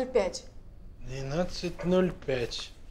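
A boy talks calmly nearby.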